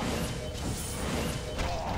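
Blows thud in a close scuffle.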